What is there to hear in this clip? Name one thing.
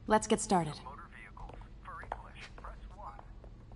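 A recorded voice speaks faintly through a phone.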